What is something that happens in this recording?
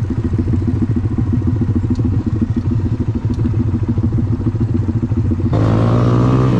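A small motorcycle engine idles with a rapid putter.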